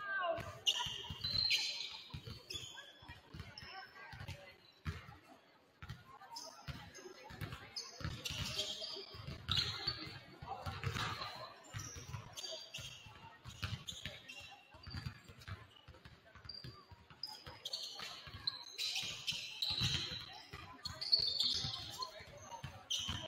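Basketballs bounce on a hardwood floor in a large echoing gym.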